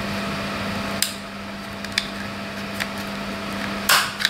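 A wire stripper clicks as it cuts and pulls insulation.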